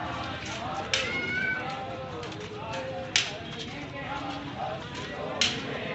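Marching feet tramp on a paved road.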